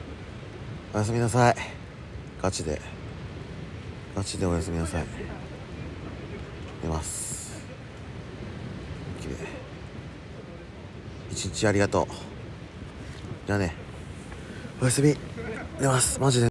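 A young man speaks quietly in short bursts, close to the microphone.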